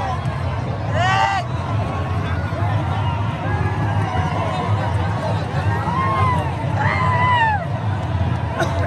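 Men whistle shrilly in a crowd.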